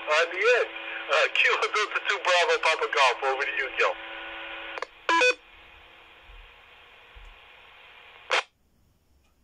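A handheld radio hisses with static, then cuts off sharply.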